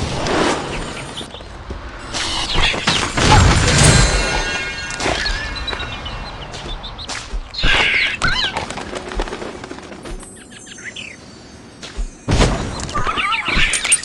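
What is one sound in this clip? A dragon roars and screeches.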